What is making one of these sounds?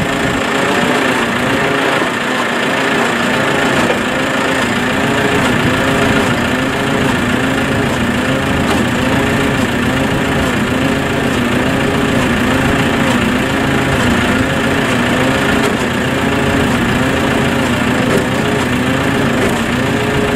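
A farm machine's engine runs nearby with a steady, rhythmic throbbing hum.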